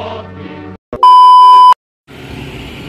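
A steady high beep sounds loudly.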